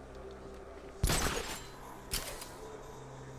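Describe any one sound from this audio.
A grappling line fires and whooshes loudly.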